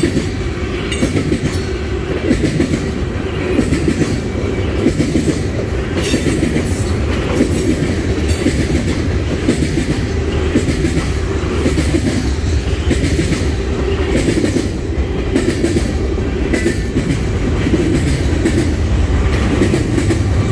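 A long freight train of tank cars rolls past, its wheels clacking over rail joints.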